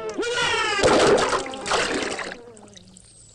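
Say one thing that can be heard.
Water splashes up as something falls into the sea.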